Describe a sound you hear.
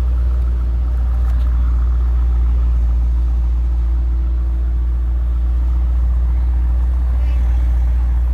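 A sports car's exhaust burbles as the car pulls slowly away.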